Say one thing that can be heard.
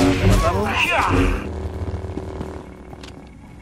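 A lightsaber hums and clashes in a fight.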